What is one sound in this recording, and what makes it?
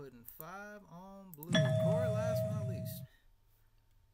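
A short electronic game jingle plays.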